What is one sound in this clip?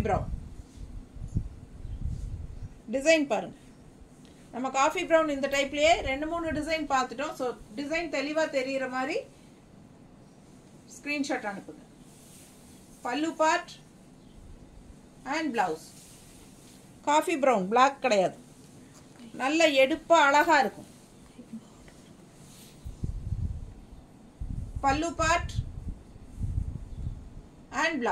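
A middle-aged woman talks close by, calmly and in short bursts.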